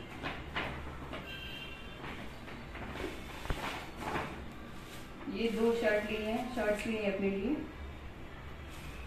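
Plastic shopping bags rustle and crinkle as they are unpacked.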